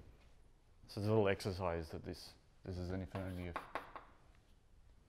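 A man speaks briefly and calmly in an echoing room.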